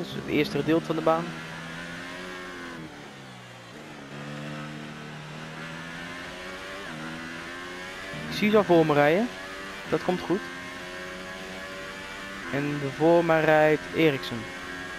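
A Formula One car's engine screams at full throttle, shifting up through the gears.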